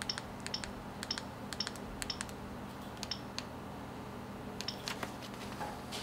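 Phone keypad buttons click softly.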